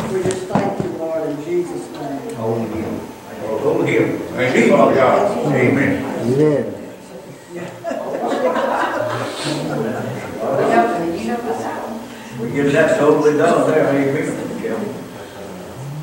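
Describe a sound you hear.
A man prays aloud with feeling in a room with some echo.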